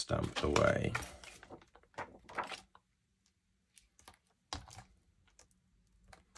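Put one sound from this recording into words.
A plastic sheet crinkles and taps as hands handle it.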